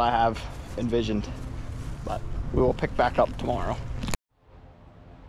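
A young man talks close by, explaining.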